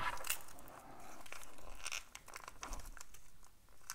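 Paper crinkles and rustles as it is handled.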